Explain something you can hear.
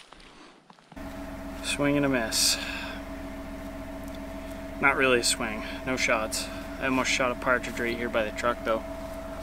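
A steady engine hum idles nearby.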